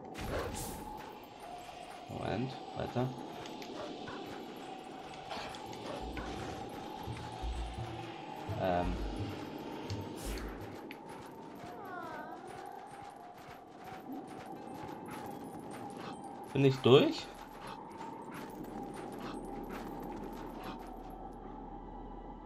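A wolf's paws patter on snow as it runs.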